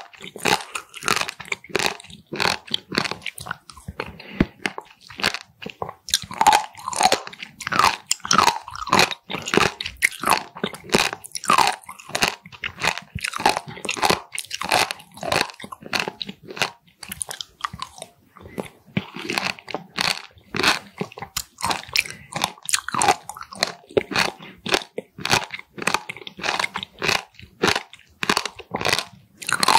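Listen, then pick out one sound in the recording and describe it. A young woman chews food close to a microphone with wet, squishy sounds.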